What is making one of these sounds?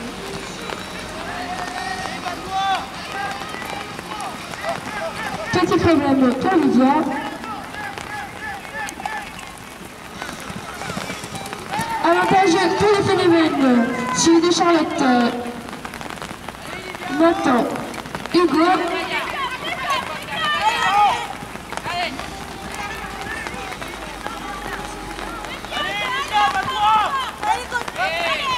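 Horses gallop with soft hoofbeats on sand.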